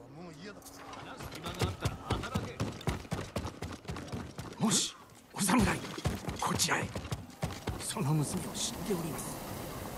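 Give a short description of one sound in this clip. Footsteps thud quickly on wooden planks.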